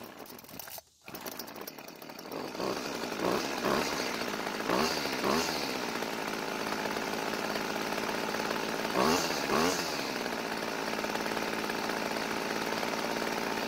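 A small petrol engine sputters to life and idles with a buzzing rattle.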